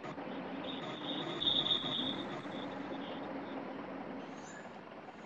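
A vehicle engine idles with a low steady hum.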